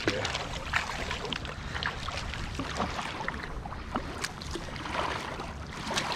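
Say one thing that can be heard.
Water splashes and drips from a kayak paddle.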